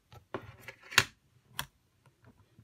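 A stamp taps down onto paper.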